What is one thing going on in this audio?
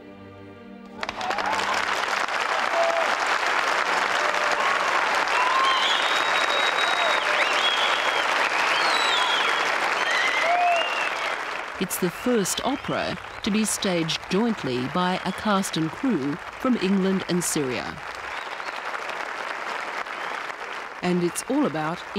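A large audience applauds loudly in an open-air space.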